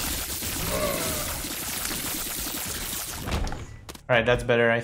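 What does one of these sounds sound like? Rapid shots and wet splatters ring out in a video game.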